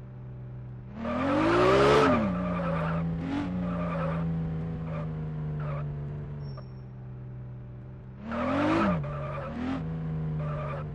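Car tyres screech as the car turns.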